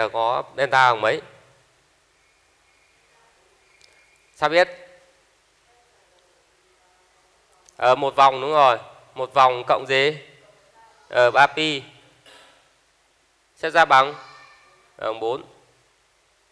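A young man speaks calmly through a headset microphone, in short phrases with pauses.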